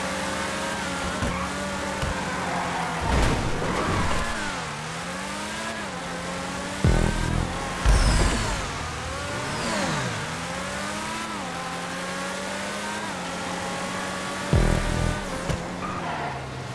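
A racing car engine revs high, rising and falling as gears shift.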